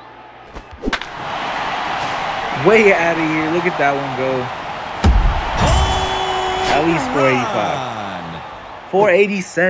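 A crowd cheers loudly in a large stadium.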